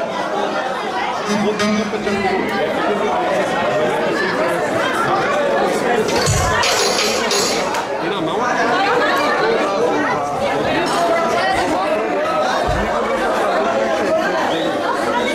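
A crowd of men and women talk and call out all around, close by.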